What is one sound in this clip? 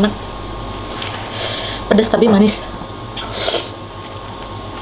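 A woman slurps noodles loudly.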